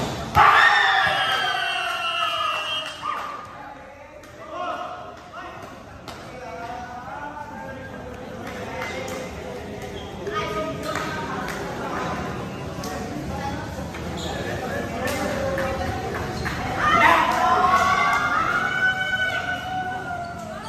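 Young men and women chatter and call out to one another.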